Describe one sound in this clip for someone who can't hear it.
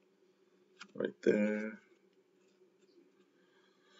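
Playing cards slide and tap against each other on a table.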